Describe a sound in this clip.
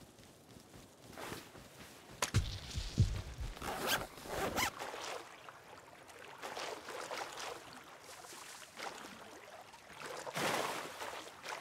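Water splashes and swishes.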